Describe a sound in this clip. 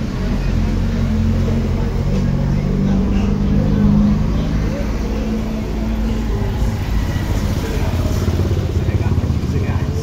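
Cars drive by.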